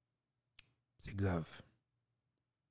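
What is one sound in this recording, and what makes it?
A man says a few words close to a microphone.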